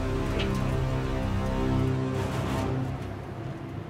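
A race car engine idles loudly.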